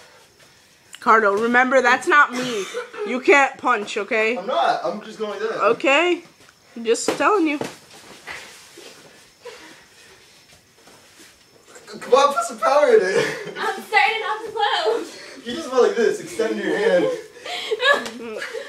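A young woman laughs and shrieks close by.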